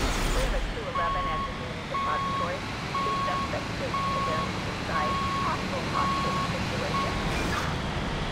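A vehicle's warning alarm beeps at an even pace.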